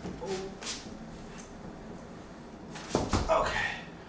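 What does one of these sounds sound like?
A sofa bumps and thuds as it is set down on the floor.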